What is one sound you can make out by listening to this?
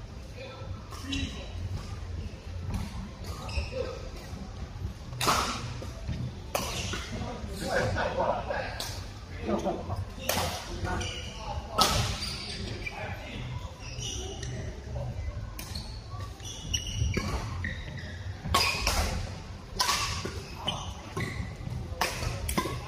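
Badminton rackets smack a shuttlecock back and forth in a large echoing hall.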